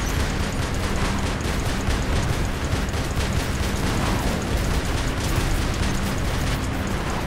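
Heavy mechanical footsteps stomp and clank in a steady rhythm.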